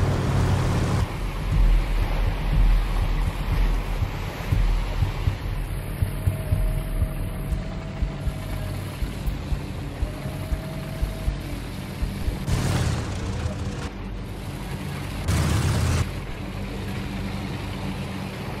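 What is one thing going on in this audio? A heavy tank engine rumbles loudly.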